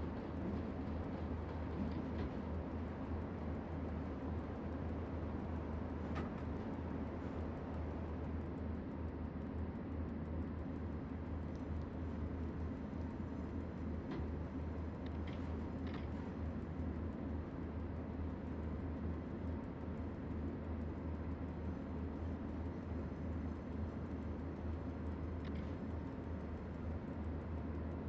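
Train wheels rumble and clack over rail joints.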